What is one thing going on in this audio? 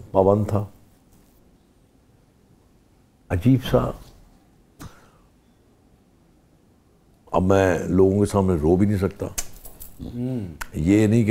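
An elderly man speaks calmly and thoughtfully into a close microphone, with pauses.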